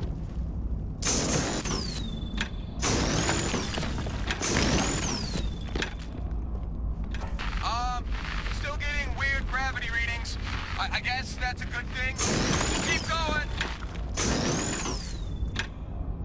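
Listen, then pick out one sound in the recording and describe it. A mining laser hisses and crackles in bursts against rock.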